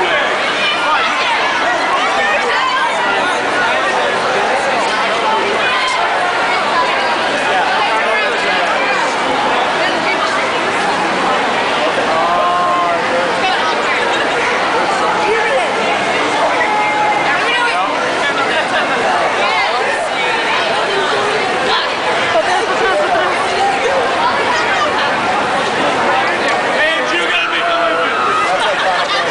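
Young people laugh and cheer.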